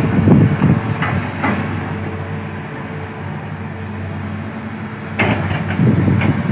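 Excavator diesel engines rumble and drone steadily.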